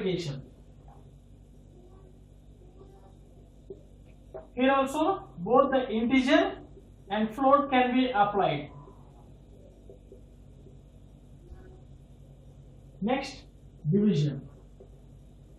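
A man speaks calmly, close by, in short bursts with pauses.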